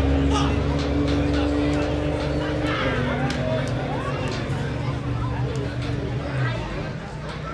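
A race car engine roars loudly and then fades away.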